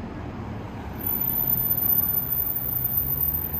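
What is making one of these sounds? Traffic rumbles along a city street.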